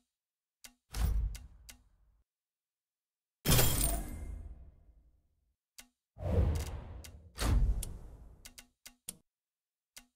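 A heavy whooshing thud sounds as a trade is confirmed.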